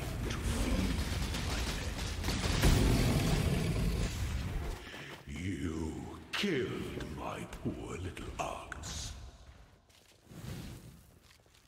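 Video game spell effects crackle and whoosh.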